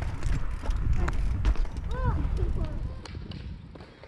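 Bicycle tyres rumble over paving stones.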